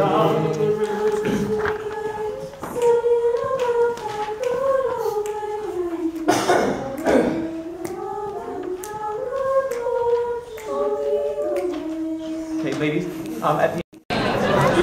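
A young man sings slowly and close by, in a clear held voice.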